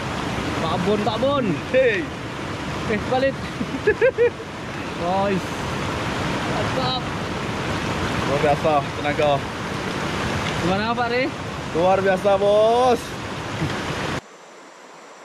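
Two young men talk and laugh with animation close by.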